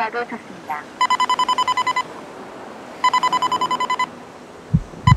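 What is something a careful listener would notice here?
A pedestrian crossing signal beeps rapidly.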